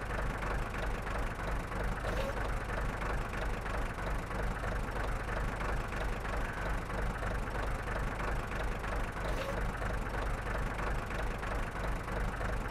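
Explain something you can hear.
A heavy tank engine idles with a steady, deep rumble.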